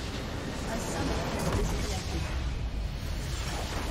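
A video game explosion booms as a base crystal is destroyed.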